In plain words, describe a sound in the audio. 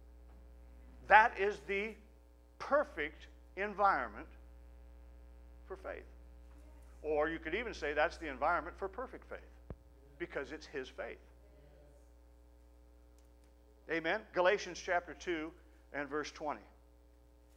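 A middle-aged man speaks with animation through a microphone, with pauses, in an echoing room.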